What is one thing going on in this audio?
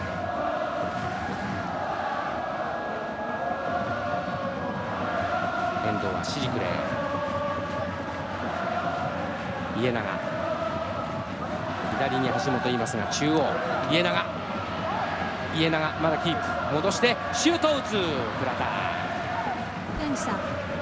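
A large stadium crowd chants and sings steadily.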